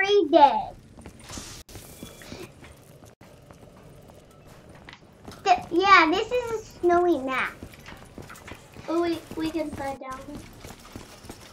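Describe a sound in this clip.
A child talks excitedly into a nearby microphone.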